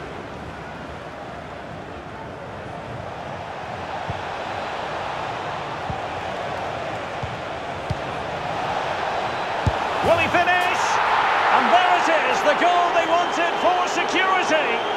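A stadium crowd roars, swelling louder.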